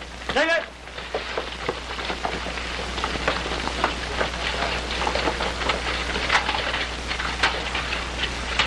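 Boots thud and scuffle as several men rush in.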